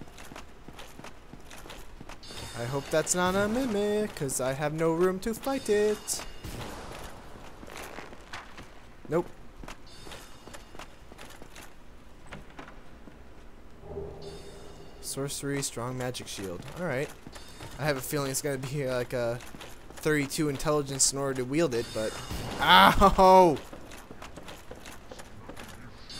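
Heavy armoured footsteps clank on a stone floor.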